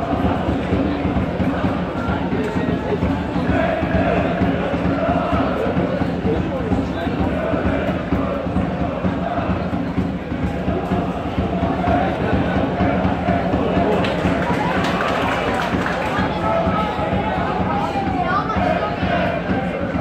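A large crowd of fans chants and sings loudly across an open stadium.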